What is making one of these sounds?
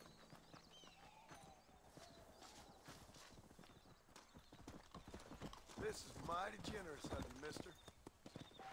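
An elderly man talks calmly into a microphone.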